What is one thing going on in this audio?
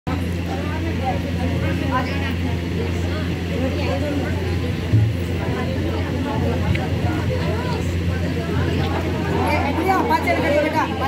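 Several women sing together close by.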